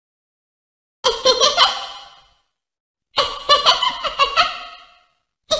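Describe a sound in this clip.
A young woman speaks brightly with animation in short bursts.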